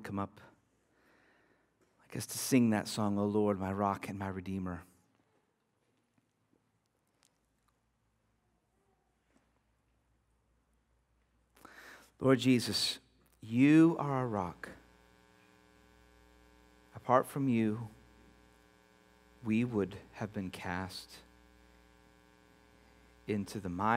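A man speaks calmly and clearly through a microphone, pausing between phrases.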